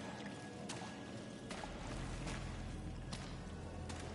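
Water splashes as a figure swims through it.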